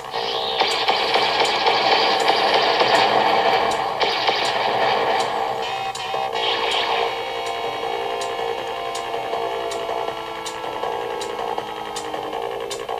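Electronic game music with steady hums and tones plays from a speaker.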